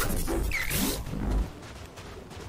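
A short glitchy electronic whoosh sounds.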